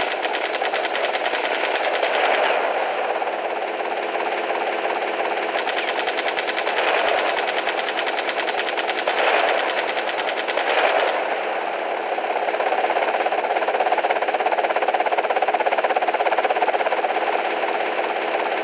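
Rapid gunfire rattles steadily.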